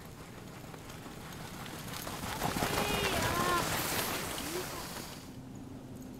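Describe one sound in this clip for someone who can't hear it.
Dogs' paws patter and crunch in the snow.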